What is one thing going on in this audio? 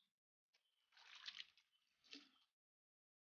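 Water drips and splashes as a net is lifted from a tank.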